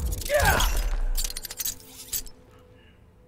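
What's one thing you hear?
A heavy impact crashes with a whooshing rush.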